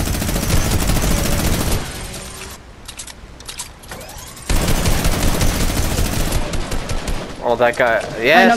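A rifle fires rapid, loud shots.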